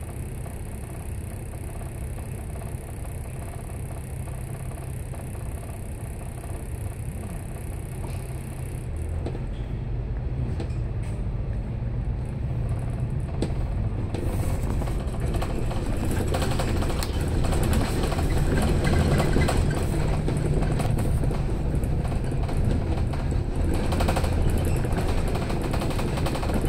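A bus engine idles with a low rumble, then grows louder as the bus pulls away.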